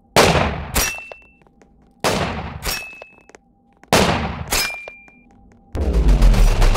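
Heavy blasts boom one after another, each fading away slowly.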